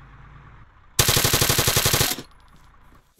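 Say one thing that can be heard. A rifle fires a rapid burst of shots at close range.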